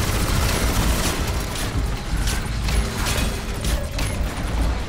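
Gunfire rattles from a video game.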